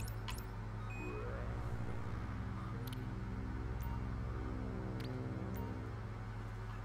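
A bright electronic jingle plays to mark success.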